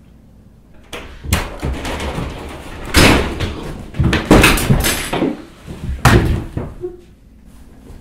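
A young boy screams loudly close by.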